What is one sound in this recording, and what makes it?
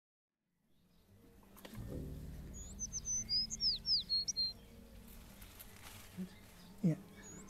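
Leaves rustle softly in a light breeze.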